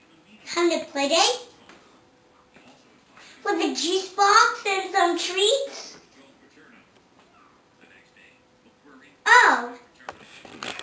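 A young girl talks into a toy phone with animation, close by.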